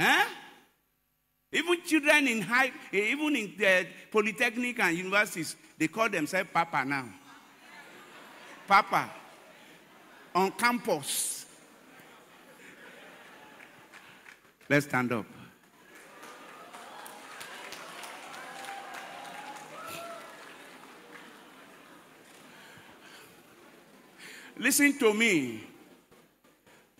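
A man preaches with animation into a microphone, heard through loudspeakers in a large hall.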